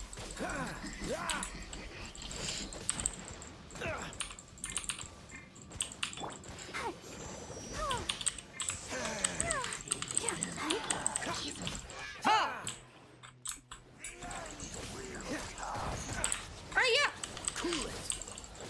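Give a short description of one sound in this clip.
Magical attacks whoosh and crash in rapid bursts.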